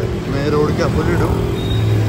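A three-wheeler engine rattles past close by.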